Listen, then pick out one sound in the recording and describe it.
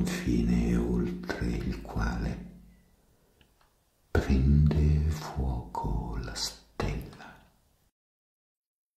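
An elderly man speaks slowly and calmly, close to a microphone.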